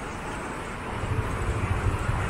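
A scooter engine rumbles close by.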